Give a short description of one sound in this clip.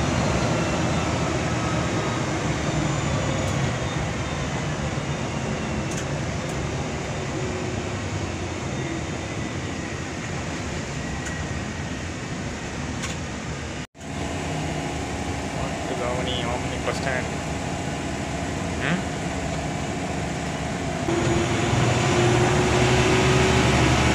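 A bus engine drones steadily as the bus drives along a road.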